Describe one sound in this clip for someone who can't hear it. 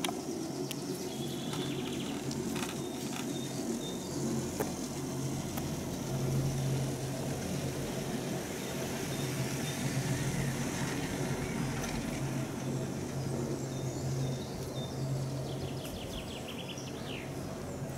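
A chairlift cable hums steadily with a low drone.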